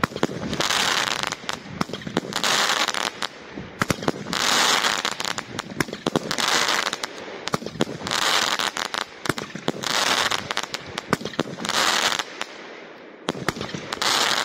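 Fireworks burst with sharp bangs and crackles, one after another.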